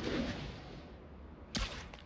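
Air rushes past in a fast swoop.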